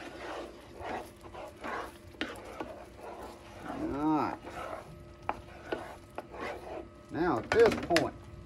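A wooden spoon stirs thick batter in a metal pan.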